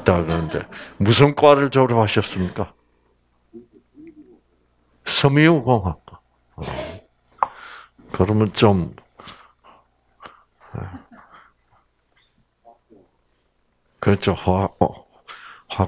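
An elderly man speaks calmly into a microphone, heard over a loudspeaker.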